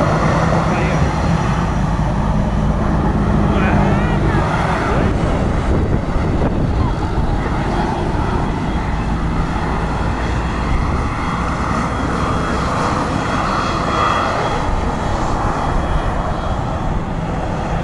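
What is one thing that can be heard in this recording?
A jet airliner's engines roar loudly as it rolls along a runway.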